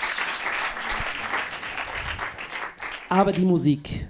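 An audience applauds in a room.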